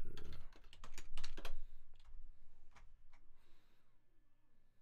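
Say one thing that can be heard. A young man speaks close into a microphone.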